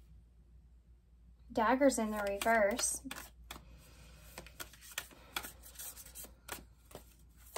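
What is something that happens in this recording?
Fingers tap and slide softly on playing cards.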